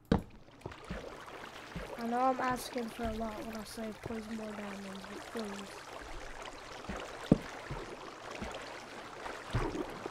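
Water flows and trickles nearby.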